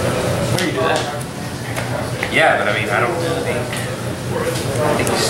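Playing cards slide and tap softly on a mat.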